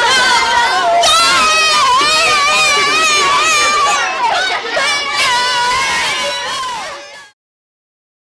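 A boy sings loudly close by.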